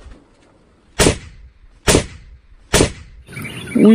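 A rifle fires several loud shots outdoors.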